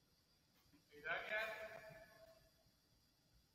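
A man at a distance calls out in a large echoing hall.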